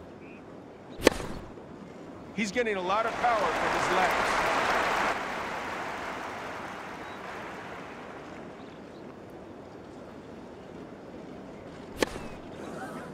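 A tennis ball is struck hard with a racket.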